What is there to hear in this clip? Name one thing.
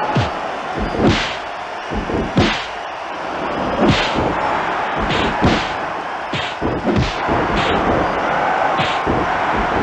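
Punches land with heavy thuds again and again.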